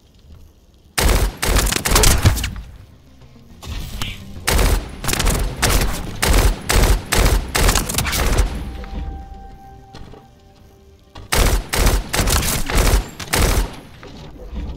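Rapid gunfire bursts loudly in short volleys.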